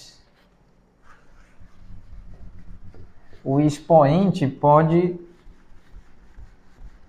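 A whiteboard eraser rubs across a board.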